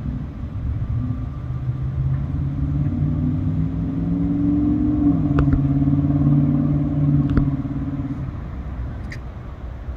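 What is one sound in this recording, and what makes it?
A car drives across the railway tracks.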